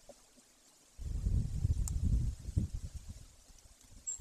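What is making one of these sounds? A large bird's wings flap and rustle close by.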